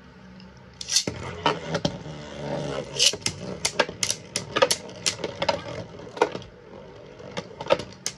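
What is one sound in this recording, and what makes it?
Spinning tops whir and scrape across a plastic dish.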